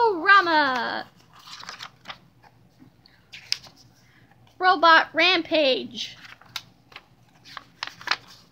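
Paper pages rustle and flip as a book's pages are turned.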